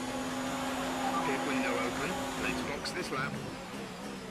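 Tyres squeal briefly under hard braking.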